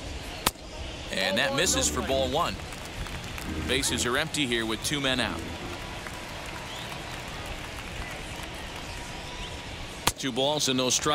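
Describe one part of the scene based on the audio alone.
A ball smacks into a catcher's mitt.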